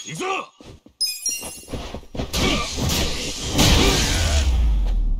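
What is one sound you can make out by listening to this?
Blows and weapon strikes land in a fight.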